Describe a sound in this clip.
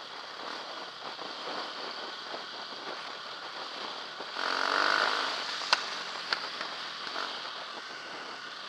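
A dirt bike engine hums steadily up close while riding.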